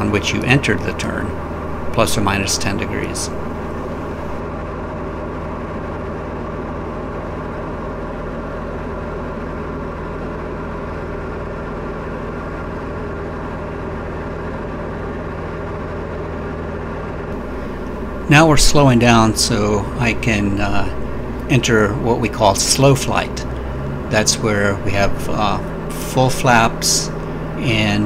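A small plane's propeller engine drones steadily.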